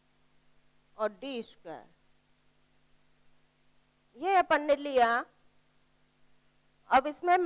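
A woman speaks clearly into a close microphone, in short phrases with pauses.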